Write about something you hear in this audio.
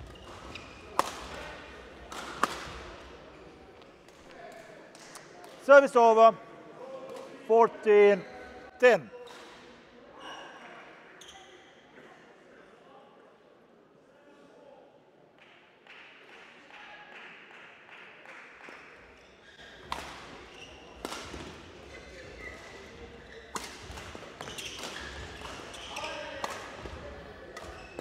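A racket strikes a shuttlecock with sharp pops in a large echoing hall.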